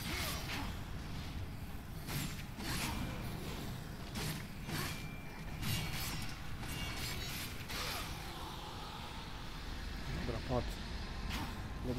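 Game blows and magic blasts crash and clang rapidly.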